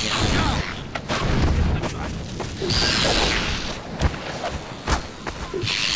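A game weapon fires with sharp, loud bursts.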